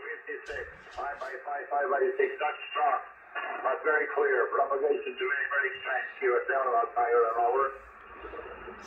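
A man speaks over a radio loudspeaker, thin and crackly.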